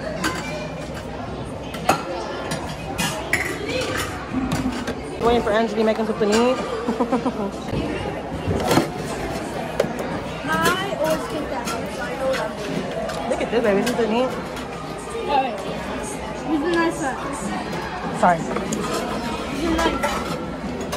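Young children talk and chatter close by.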